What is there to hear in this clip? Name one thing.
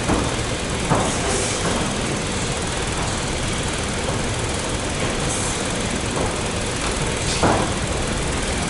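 Knees thud against a body during clinch practice.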